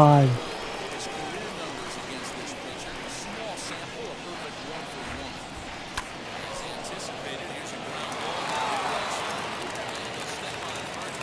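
A stadium crowd murmurs and then cheers louder.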